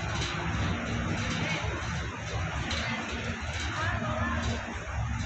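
Air conditioning units hum steadily nearby.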